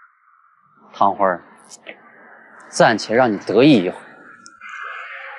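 A young man speaks coldly close by.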